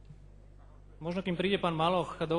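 A man speaks loudly through a microphone in an echoing hall.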